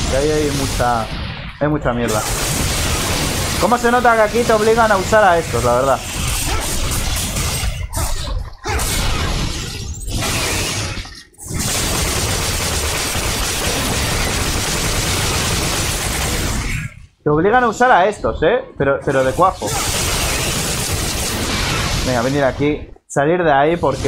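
Swords clash and slash in a fight.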